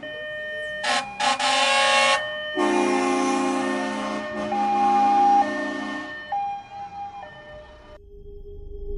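A fire truck's horn blares loudly in long blasts.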